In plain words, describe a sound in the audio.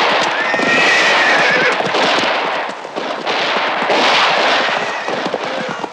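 Horses gallop over sandy ground.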